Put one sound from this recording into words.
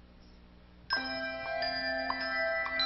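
Handbells ring out together.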